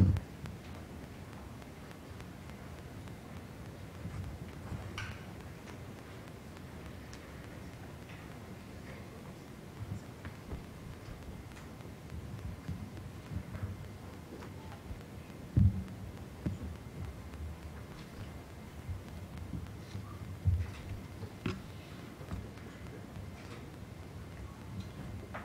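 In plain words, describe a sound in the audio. A seated audience murmurs quietly in a large room.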